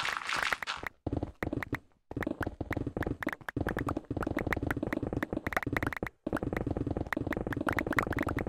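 Rapid game pickaxe taps chip at stone blocks.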